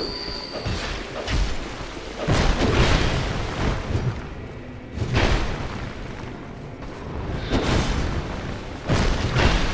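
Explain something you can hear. Heavy whooshing blows and impacts strike in bursts.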